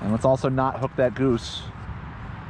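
A man speaks briefly and close up.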